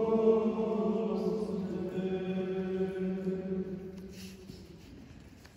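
Men chant a sustained tone together in an echoing hall.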